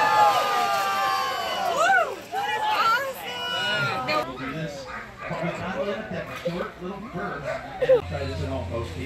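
Sled dogs bark and howl excitedly.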